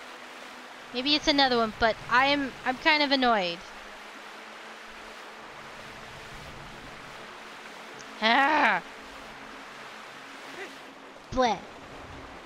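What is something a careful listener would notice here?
Water splashes softly as a swimmer paddles through it.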